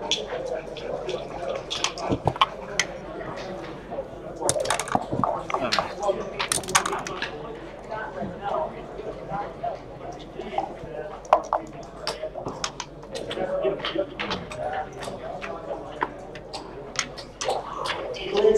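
Plastic game pieces click and clack as they are moved on a board.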